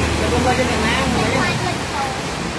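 A motor scooter splashes through deep water nearby.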